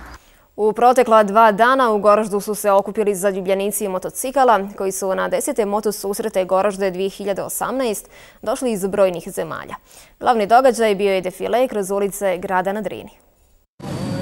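A young woman reads out calmly and clearly into a microphone.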